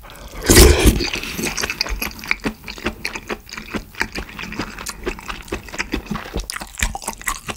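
A young man chews food wetly and noisily up close.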